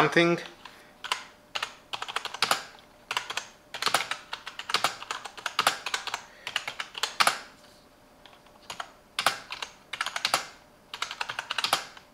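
Keys clack quickly on a mechanical keyboard.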